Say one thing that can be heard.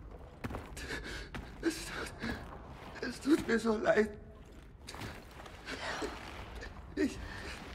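A man sobs and breathes heavily.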